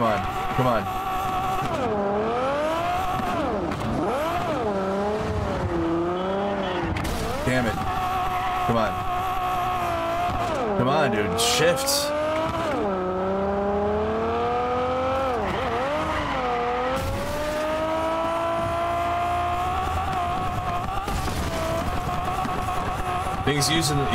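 A car engine roars, its pitch rising and falling as it speeds up and shifts gears.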